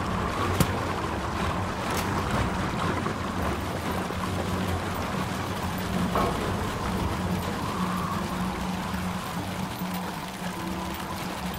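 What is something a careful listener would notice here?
Footsteps patter along as a small figure runs.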